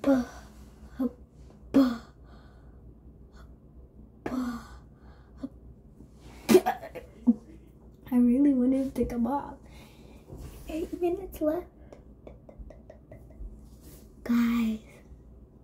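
A young girl speaks playfully close by, in short bursts.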